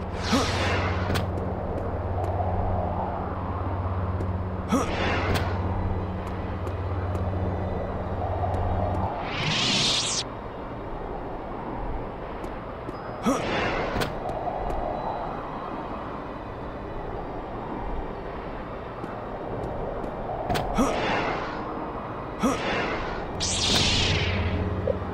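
A lightsaber whooshes as it swings.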